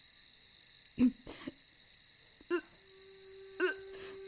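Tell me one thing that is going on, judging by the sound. A young woman sobs quietly nearby.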